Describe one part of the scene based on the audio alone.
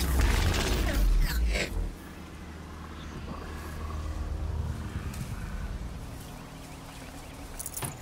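Tall grass rustles as someone creeps through it.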